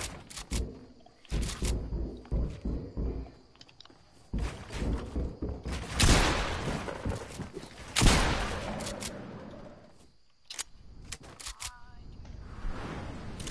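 Wooden panels snap into place in quick bursts of knocks.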